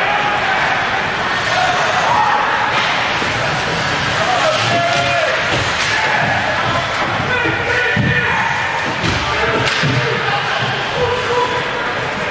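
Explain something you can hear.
A crowd of spectators chatters and shouts in a large echoing rink.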